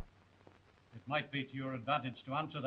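A middle-aged man speaks calmly and firmly.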